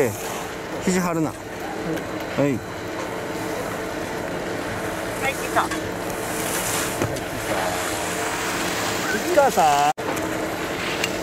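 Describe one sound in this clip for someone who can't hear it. Skis scrape and hiss across hard snow.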